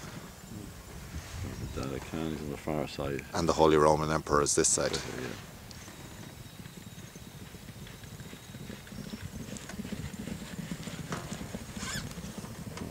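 Horses' hooves thud rapidly on soft sand as horses gallop past.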